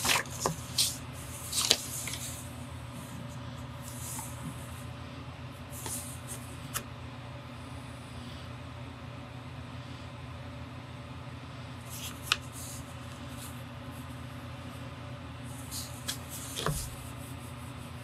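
Paper rustles and taps as a hand shifts it.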